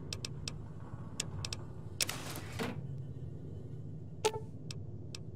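Game menu clicks tick sharply several times.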